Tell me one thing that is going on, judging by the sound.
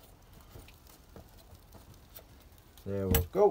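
A wooden tamper presses soil in a tray with soft thuds.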